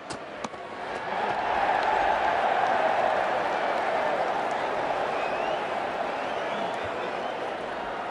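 A stadium crowd swells into loud cheering.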